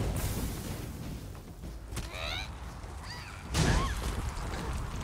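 A winged creature shrieks with rising, wavering cries.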